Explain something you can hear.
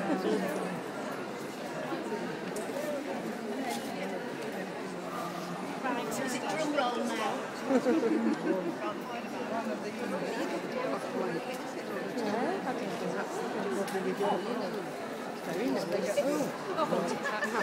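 A crowd of people chatters all around in a large echoing hall.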